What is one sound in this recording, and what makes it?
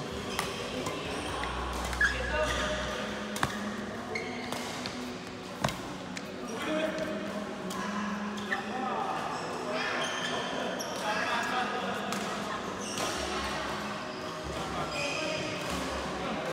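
Men talk and call out in the distance.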